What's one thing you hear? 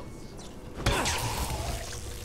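A blast bursts loudly close by.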